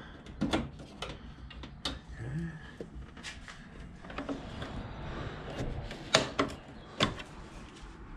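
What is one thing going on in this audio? Plastic clicks and knocks sharply as a panel is pried loose.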